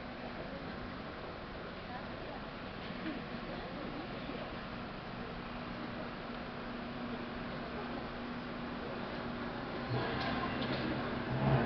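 An audience murmurs softly in a large echoing hall.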